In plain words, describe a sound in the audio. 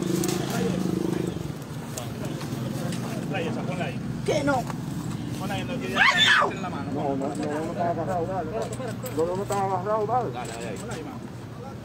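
Several adults shout and talk over one another close by.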